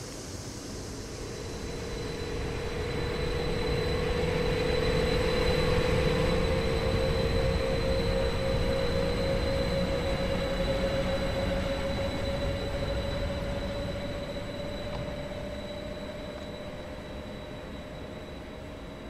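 An electric multiple-unit train pulls away with a rising motor whine.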